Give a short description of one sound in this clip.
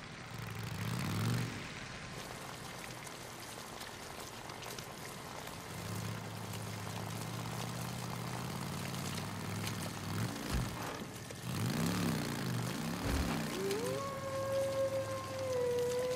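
Tyres crunch over dirt and gravel.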